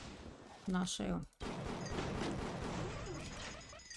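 A pistol fires with a sharp bang.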